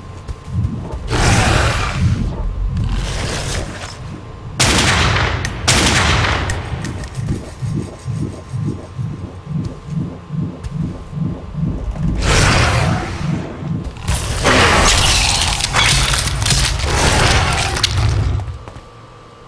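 Monsters hiss and snarl close by.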